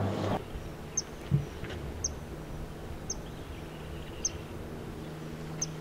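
A small bird gives short, sharp high calls at an even pace.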